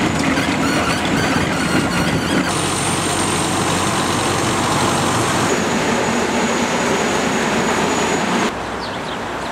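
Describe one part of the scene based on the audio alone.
A small loader's diesel engine rumbles steadily nearby.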